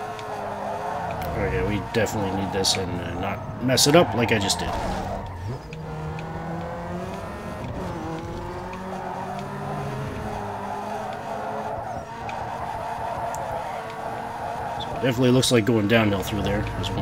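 A car engine revs high and steadily.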